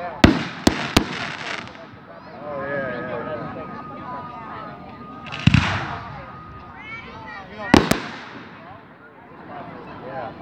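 Fireworks crackle and sizzle after bursting.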